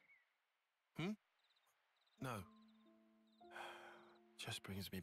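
A second young man answers in a low, hesitant voice.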